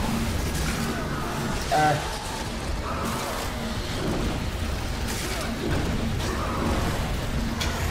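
Sword slashes and impacts clash.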